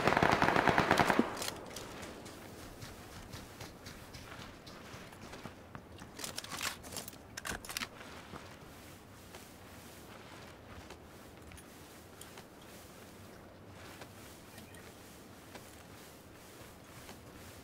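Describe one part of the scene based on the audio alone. A body crawls and rustles through dry grass.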